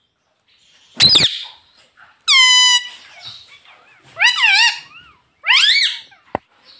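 A parrot squawks and chatters in loud, shrill bursts close by.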